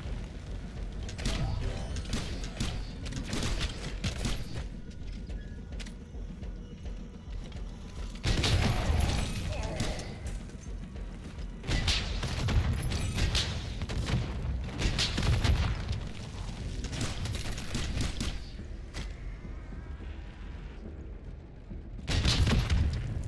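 Gunfire bursts out loudly in quick rattling bursts.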